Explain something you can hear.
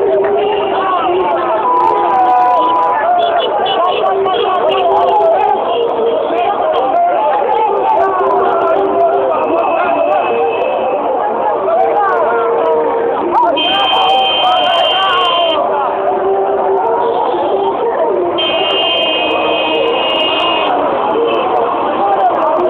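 Car horns honk repeatedly.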